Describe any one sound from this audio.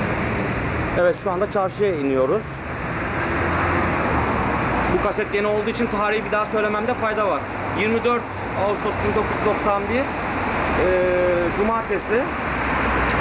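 A woman speaks close by, calmly.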